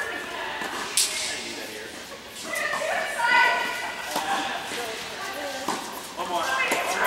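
Tennis rackets strike a ball, ringing through a large echoing hall.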